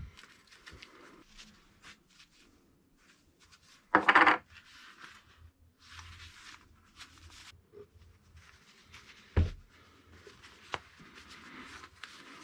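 Metal parts clink as they are handled and set down.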